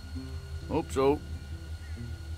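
A man speaks briefly and quietly.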